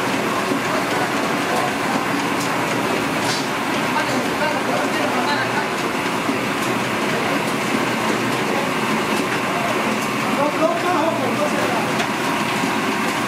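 A dough rolling machine hums and rumbles steadily nearby.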